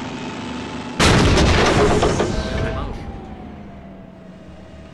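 A tank cannon fires with a loud boom that echoes away.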